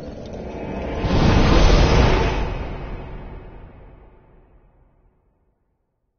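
A loud magical whoosh swells and fades away.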